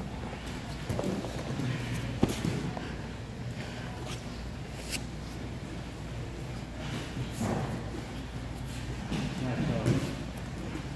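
Bodies thump and shuffle on mats as people grapple, in a large echoing hall.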